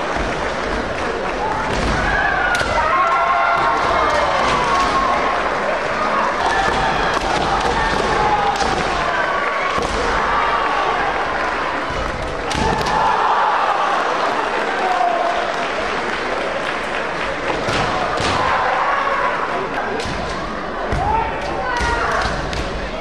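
Young fighters shout long, high battle cries in a large echoing hall.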